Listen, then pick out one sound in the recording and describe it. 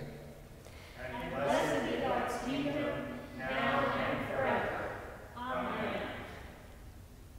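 A group of people chant a response together.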